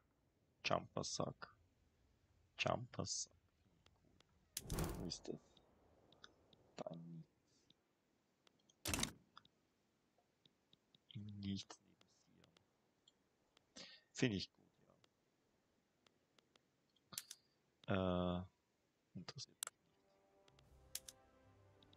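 Short game interface clicks and chimes sound now and then.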